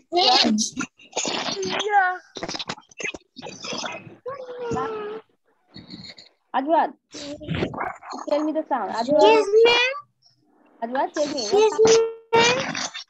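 A young boy speaks through an online call.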